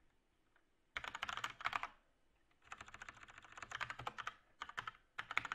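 A keyboard clatters with quick, busy typing, close by.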